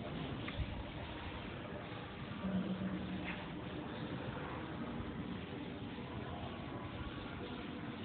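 A duster rubs softly across a chalkboard.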